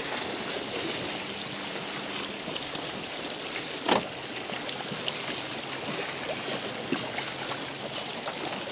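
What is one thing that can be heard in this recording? Wind blows hard outdoors across open water.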